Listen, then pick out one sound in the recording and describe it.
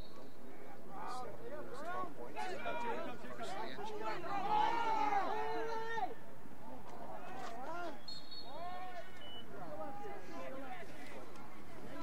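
A crowd of spectators cheers and shouts excitedly outdoors.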